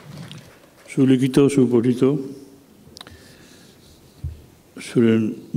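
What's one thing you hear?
A man speaks calmly through a microphone and loudspeakers in a large hall.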